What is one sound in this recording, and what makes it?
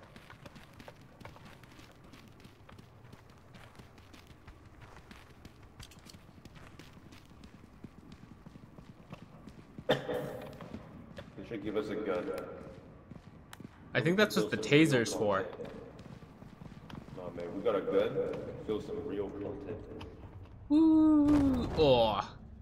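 Footsteps tap slowly on a hard floor.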